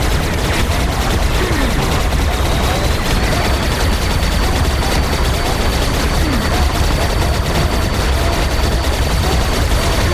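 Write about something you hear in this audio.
A rapid-fire energy weapon shoots continuously with dense zapping bursts.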